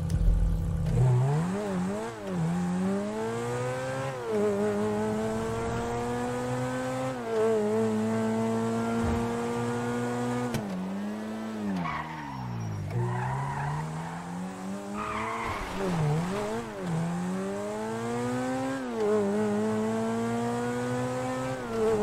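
A car engine revs up and down as it races along, shifting gears.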